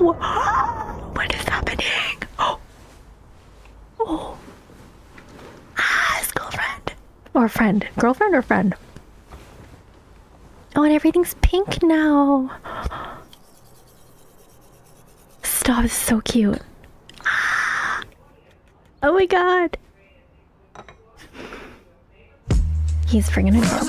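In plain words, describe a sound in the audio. A young woman talks animatedly into a close microphone, gasping and exclaiming.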